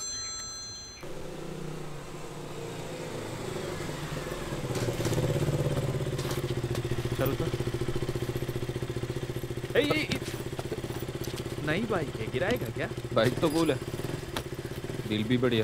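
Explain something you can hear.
A motorcycle engine rumbles steadily nearby.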